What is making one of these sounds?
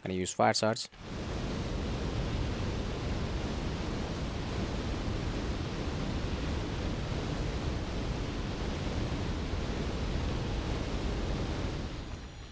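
Flames roar and whoosh steadily.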